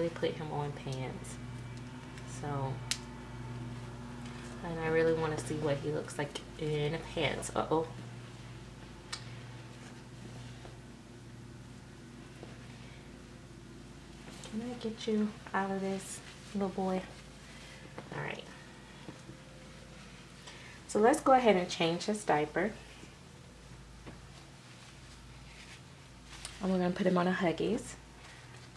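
Soft cloth rustles as a baby's clothes are pulled off.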